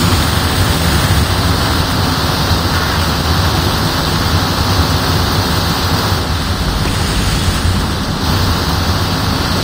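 Rushing water roars steadily all around.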